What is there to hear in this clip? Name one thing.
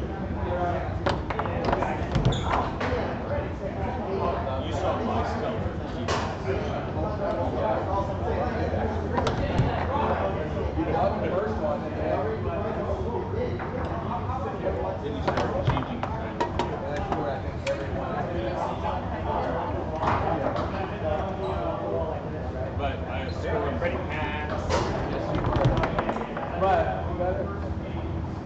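Players spin and slide the rods with rattling knocks.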